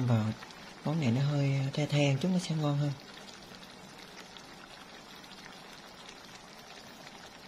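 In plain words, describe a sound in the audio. Chopsticks stir pork in a frying pan.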